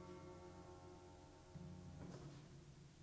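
A harpsichord chord rings and then stops.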